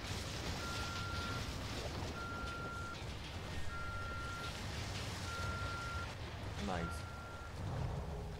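Water splashes and churns.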